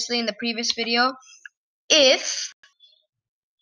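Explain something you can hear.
A boy speaks with animation close to a microphone.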